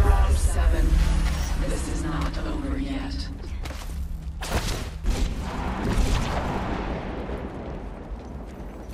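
Quick footsteps patter as a game character runs over hard ground.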